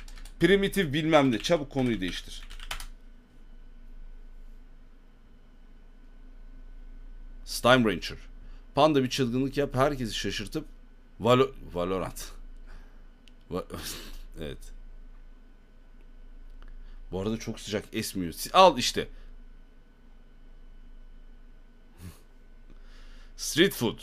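A man speaks casually and close into a microphone, in bursts with pauses.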